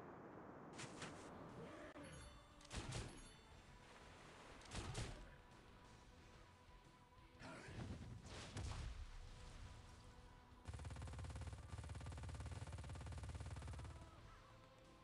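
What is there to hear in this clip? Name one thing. Sword slashes and magic blasts whoosh and crash in a game battle.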